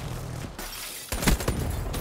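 Gunfire from a game crackles in quick bursts.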